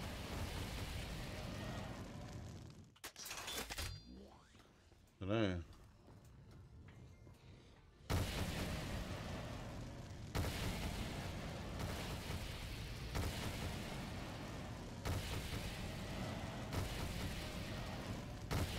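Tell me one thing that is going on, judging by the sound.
Fire blasts roar and crackle from a weapon in rapid bursts.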